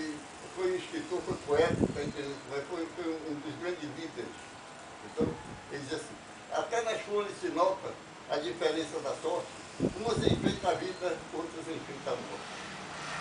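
An elderly man talks animatedly close by.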